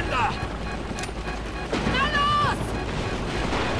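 A man shouts tensely.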